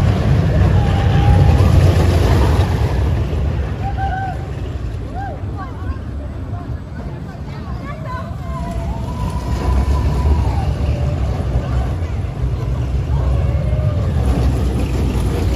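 Children riding a roller coaster scream and squeal with excitement.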